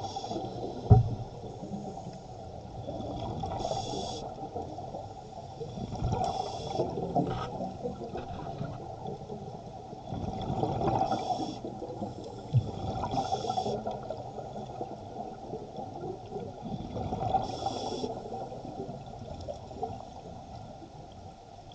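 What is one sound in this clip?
Water rushes and rumbles in a muffled, steady underwater wash.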